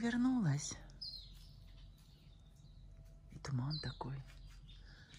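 A bird calls nearby.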